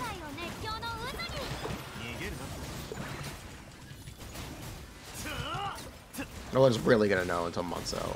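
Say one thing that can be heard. Game sound effects of magic blasts and impacts play.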